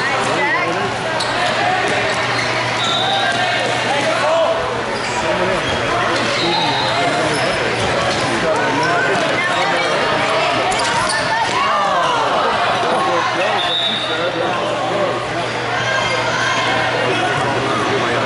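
A ball thuds as boys kick it.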